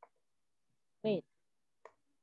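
A young child speaks softly over an online call.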